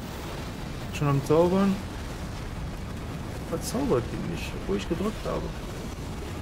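A man speaks briefly and casually into a close microphone.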